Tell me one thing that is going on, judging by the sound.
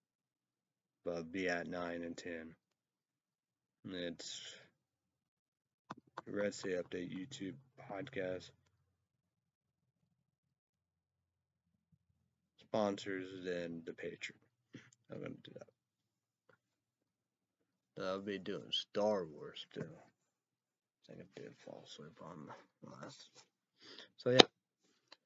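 A young man talks calmly close by, in short bursts with pauses.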